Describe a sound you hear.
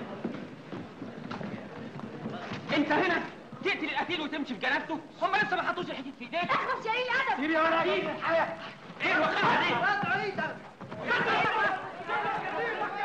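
Men shout and argue excitedly in a crowd.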